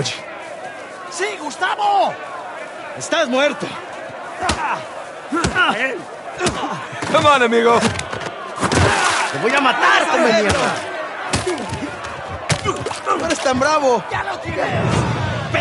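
A crowd of men jeers and shouts.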